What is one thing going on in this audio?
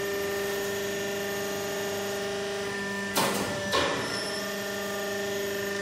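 A machine hums steadily with an electric motor drone.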